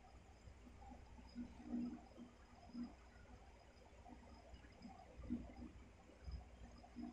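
A large dog snores softly in its sleep.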